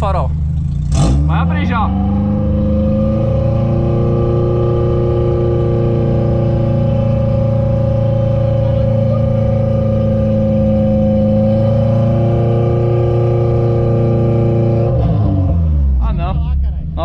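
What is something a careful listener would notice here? A car engine revs up, holds a high steady drone, then winds back down.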